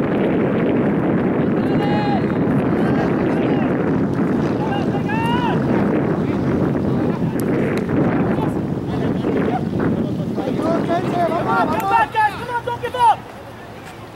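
Young men shout to each other across an open playing field.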